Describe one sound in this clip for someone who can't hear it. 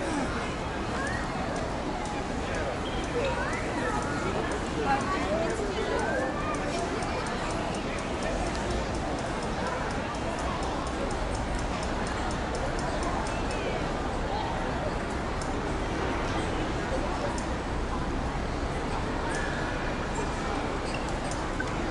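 A crowd of people chatters in a busy outdoor pedestrian street.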